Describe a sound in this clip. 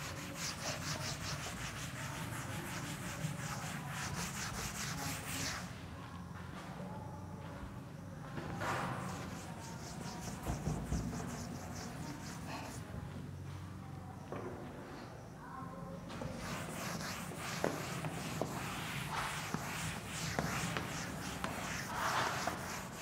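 A cloth rubs briskly against a chalkboard.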